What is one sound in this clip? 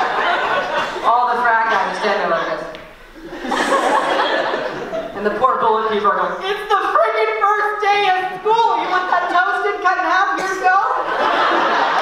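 A young woman speaks with animation through a microphone in an echoing hall.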